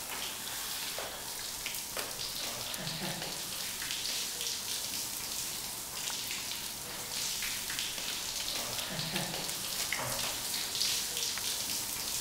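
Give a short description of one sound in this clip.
Shower water sprays and splashes steadily.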